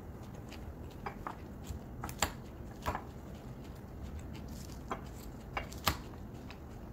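A fork scrapes and clinks against a bowl.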